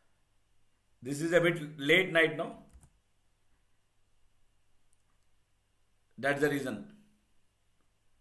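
A man speaks calmly into a close microphone, in short phrases with pauses.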